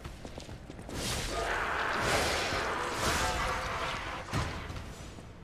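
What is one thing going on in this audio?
A blade slashes through the air with a loud whoosh.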